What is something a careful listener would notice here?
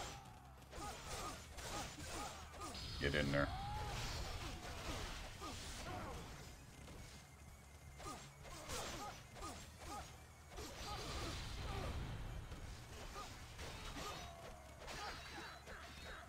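Swords clash and strike in a busy battle.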